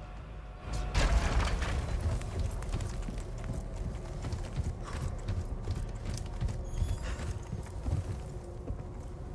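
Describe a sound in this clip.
Footsteps thud on wooden stairs and planks.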